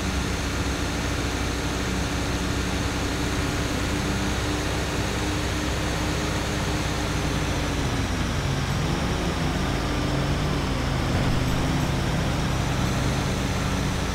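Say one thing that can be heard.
Tyres roar on a highway.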